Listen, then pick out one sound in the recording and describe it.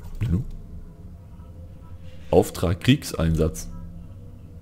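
A man speaks briefly and casually, close to a microphone.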